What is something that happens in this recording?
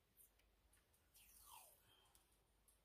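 Masking tape peels off a roll with a soft rasp.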